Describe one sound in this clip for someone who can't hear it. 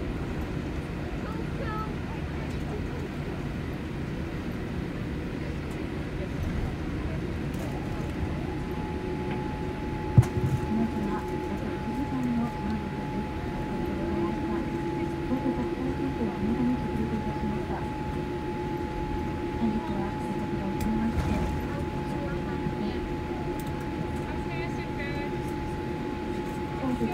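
Aircraft wheels rumble and thump along a runway.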